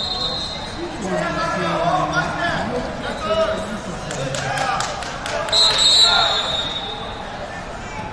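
Coaches and spectators shout encouragement.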